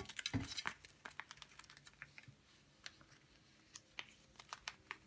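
Light taps and clicks on a hard surface.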